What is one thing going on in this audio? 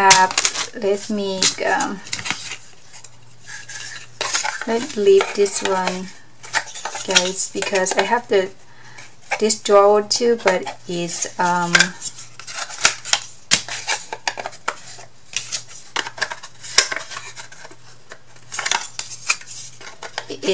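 Thin wooden pieces knock and clatter against each other.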